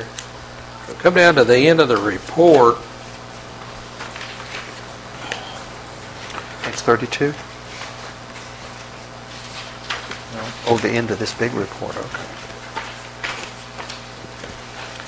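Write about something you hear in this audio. Papers rustle on a table.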